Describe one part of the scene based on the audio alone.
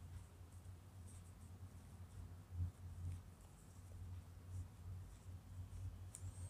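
A crochet hook softly clicks and rubs against yarn.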